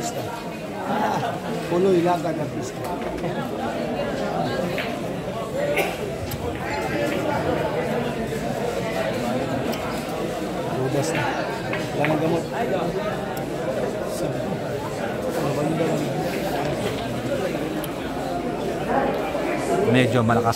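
A crowd murmurs and chatters in the background.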